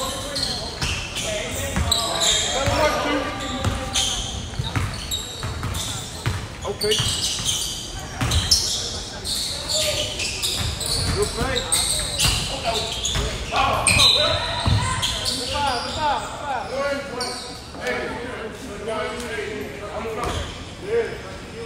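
Spectators talk and call out nearby.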